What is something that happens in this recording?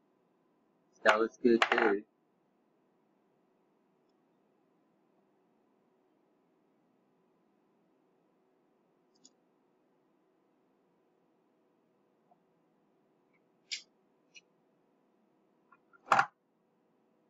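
Wire leads click and rattle softly as they are handled.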